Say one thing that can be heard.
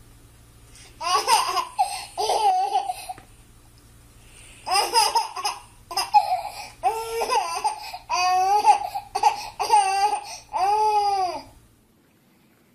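A baby laughs loudly in bursts of giggles.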